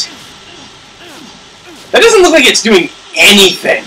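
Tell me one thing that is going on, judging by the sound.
A blade slashes into flesh with a wet thud.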